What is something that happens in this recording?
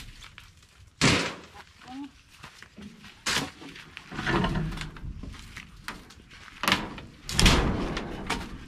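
Wooden poles knock and thud against each other.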